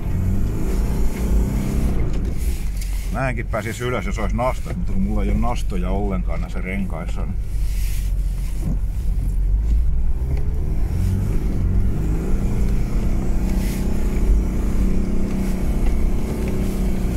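Tyres crunch over packed snow.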